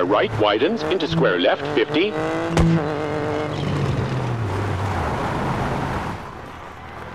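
A rally car engine revs hard, rising and falling in pitch with gear changes.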